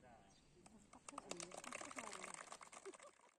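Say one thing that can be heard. A crowd of young people chatters faintly in the distance.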